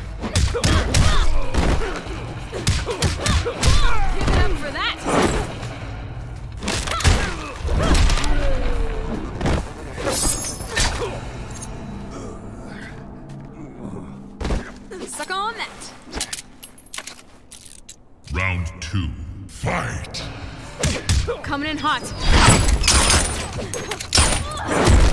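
Heavy punches and kicks land with loud thuds and smacks.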